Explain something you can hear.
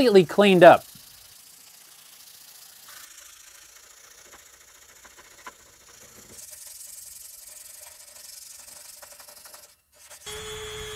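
Sandpaper scrapes against a small metal piece.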